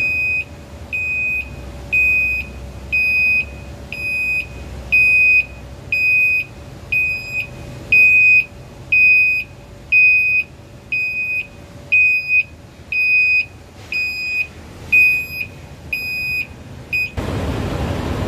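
A dump truck's warning alarm beeps.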